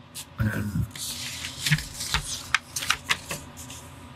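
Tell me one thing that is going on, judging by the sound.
A pen scratches across paper in quick strokes.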